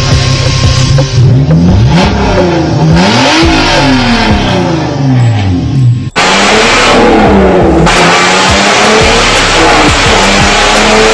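A car engine revs up and drops back again and again.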